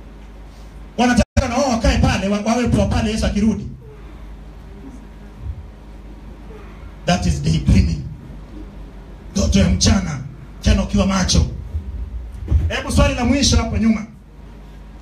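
A man preaches loudly and with animation through a microphone and loudspeakers, in bursts with pauses.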